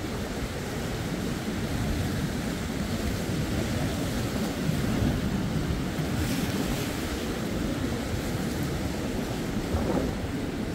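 Strong wind buffets outdoors with a heavy low rumble.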